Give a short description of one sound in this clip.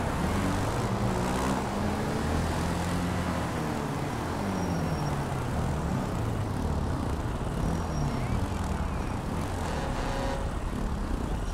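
A motorcycle engine revs up and down as it rides along.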